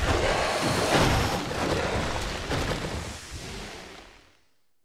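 Wet flesh squelches and splatters onto wooden boards.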